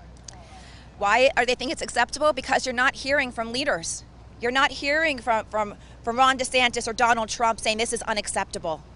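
A woman speaks firmly into microphones, close by.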